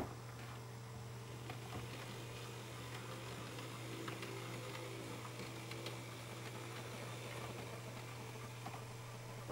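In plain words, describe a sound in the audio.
A small model train motor hums softly as a locomotive rolls along the track.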